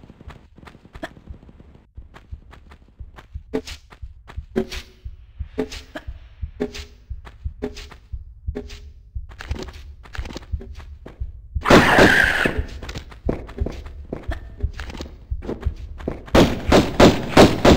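Footsteps tap on a hard stone floor at a steady running pace.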